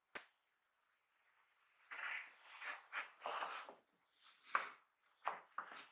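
A sheet of foam rustles as it is lifted and laid down.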